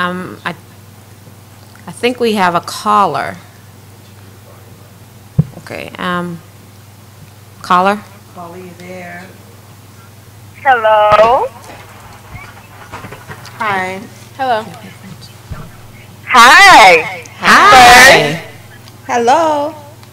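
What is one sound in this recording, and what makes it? Several women talk by turns into close microphones, with pauses between.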